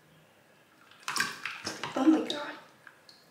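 Water splashes as a young girl dips her face into a bowl.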